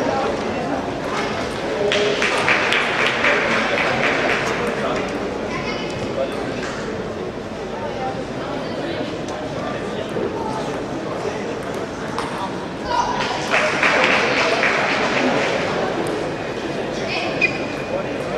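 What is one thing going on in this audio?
Ping-pong balls click against paddles and tables in a large echoing hall.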